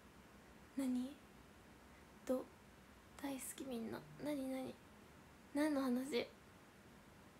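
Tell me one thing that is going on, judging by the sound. A young woman talks casually and close to a microphone, in short bursts.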